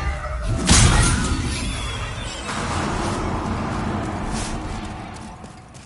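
A magic blast whooshes and booms heavily.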